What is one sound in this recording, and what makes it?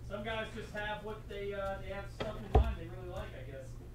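A stack of cards is set down on a table with a thud.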